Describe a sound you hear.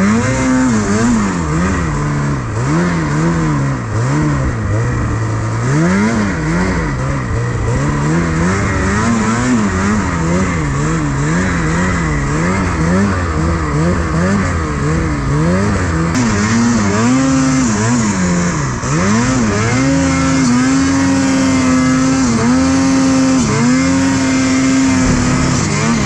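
Deep snow swishes and sprays against the snowmobile.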